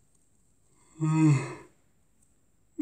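A man groans and yawns loudly.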